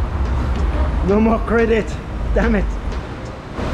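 A man speaks cheerfully and close up.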